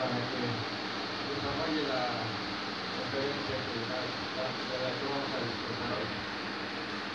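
A man speaks into a microphone through loudspeakers in an echoing hall.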